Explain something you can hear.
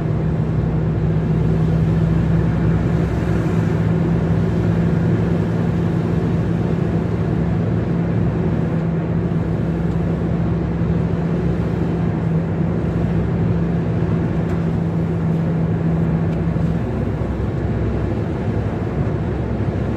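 Tyres roar on the road at speed.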